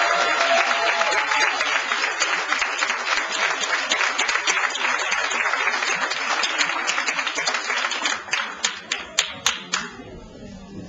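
An audience claps and applauds loudly, then the clapping trails off.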